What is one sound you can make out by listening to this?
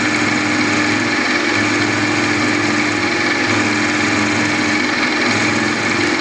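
A milling machine spindle whirs steadily.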